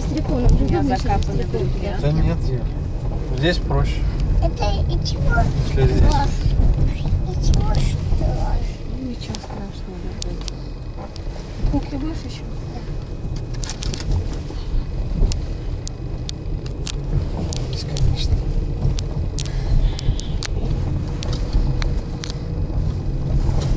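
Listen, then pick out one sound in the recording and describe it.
Car tyres rumble and crunch over a bumpy dirt road.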